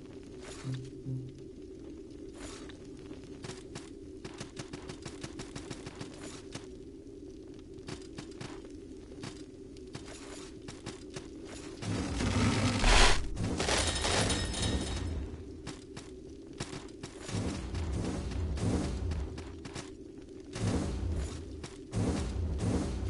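A low, steady drone of music plays throughout.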